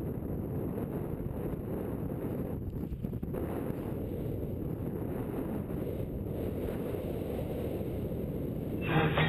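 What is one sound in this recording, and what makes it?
Strong wind buffets and roars past in flight outdoors.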